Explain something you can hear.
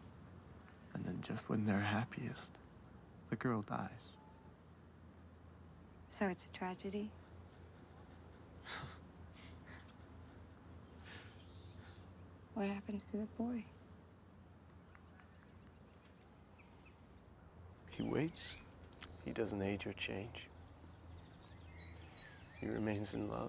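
A young woman speaks softly and emotionally, close by.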